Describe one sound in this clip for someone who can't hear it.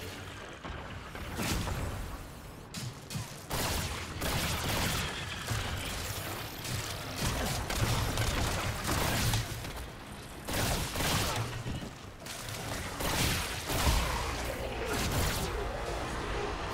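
A pistol fires shot after shot in loud bursts.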